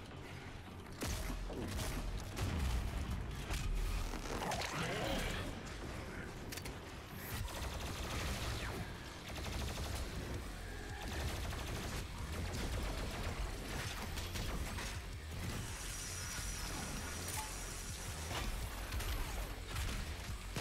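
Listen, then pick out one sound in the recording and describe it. Guns fire and explosions boom in a fast action game.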